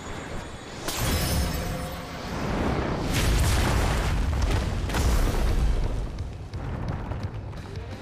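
A magical blast bursts with a deep, rushing roar.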